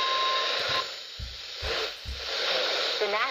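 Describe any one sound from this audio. A handheld radio clicks and knocks as it is handled.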